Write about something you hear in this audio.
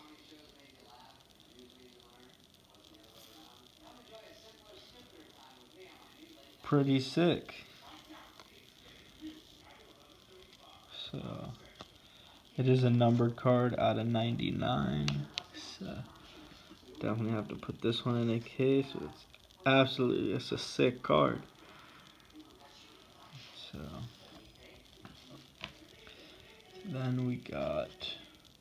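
Cards rustle and slide softly between fingers.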